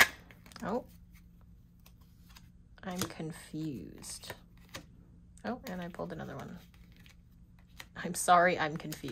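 Paper cards rustle and tap softly as they are handled and laid down.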